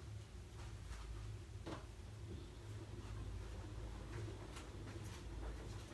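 A washing machine drum turns with a low hum.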